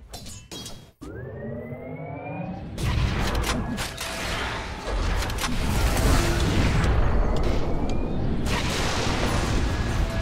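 Magic spells whoosh and crackle amid a fight.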